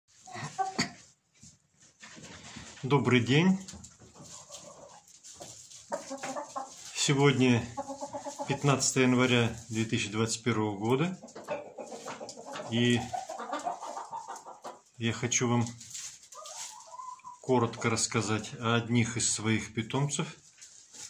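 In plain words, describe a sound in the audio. Hens cluck and murmur close by.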